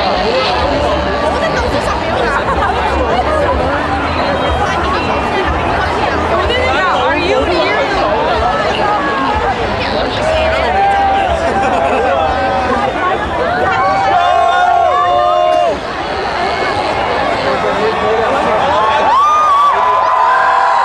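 A large crowd of people chatters and shouts loudly outdoors.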